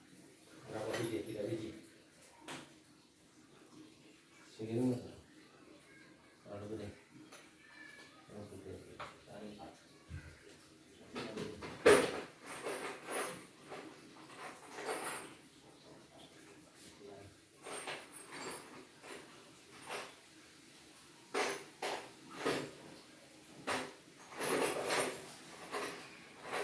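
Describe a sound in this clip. A door frame creaks and knocks as someone pushes on it.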